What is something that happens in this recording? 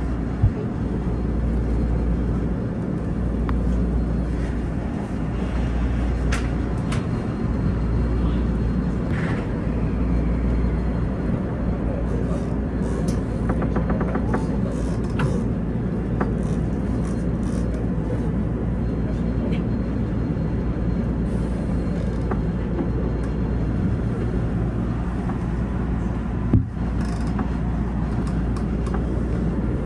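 Wheels clatter and click over rail joints.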